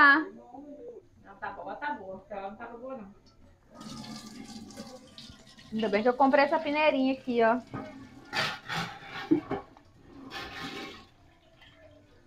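Liquid pours and splashes into a pot.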